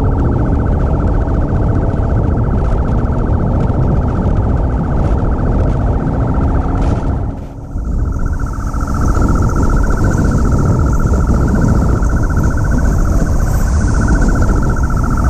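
Wind rushes past a motorcycle rider.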